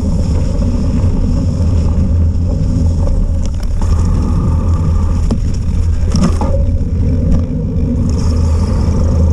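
Wind buffets the microphone with a heavy, steady rumble.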